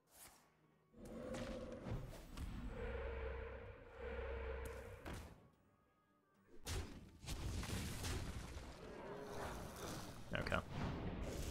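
Game sound effects whoosh and chime.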